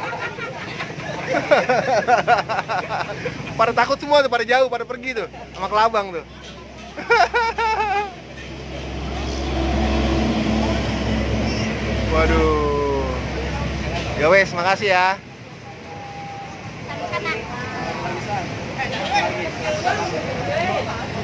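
A boy laughs and talks excitedly close by.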